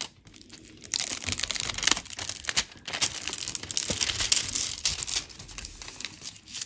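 A plastic sheet crinkles and rustles under fingers.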